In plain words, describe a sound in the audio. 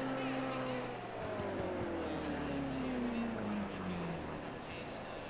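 A car engine's pitch slides slowly downward.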